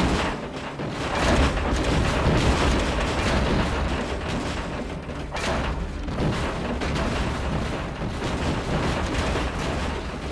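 Metal debris clatters and crashes.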